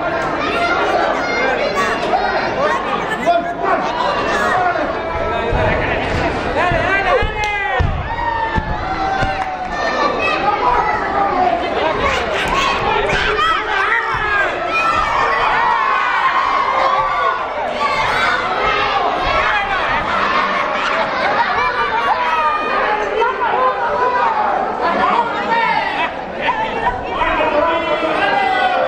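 A crowd shouts and cheers throughout in an echoing hall.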